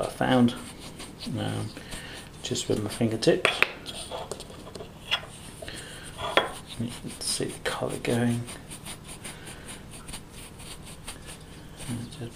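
A coin rubs and scrapes in a gritty paste.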